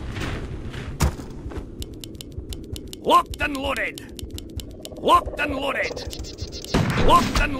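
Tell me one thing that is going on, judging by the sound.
Game battle effects pop and click in quick bursts.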